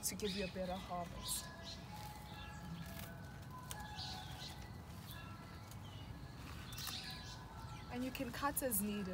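Leaves rustle as plants are handled.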